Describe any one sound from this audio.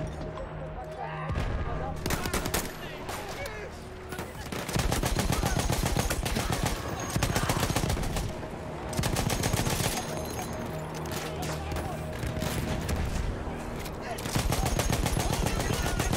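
Gunshots crack in the distance.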